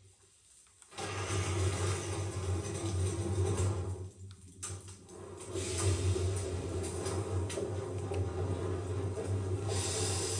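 A steam engine chugs and hums steadily.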